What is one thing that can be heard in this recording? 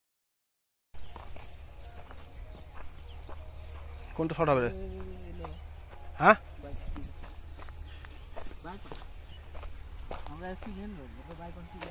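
Footsteps crunch on dry soil.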